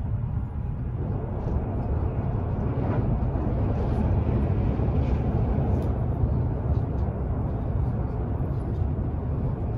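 A train's rushing noise grows louder and harsher as it speeds along.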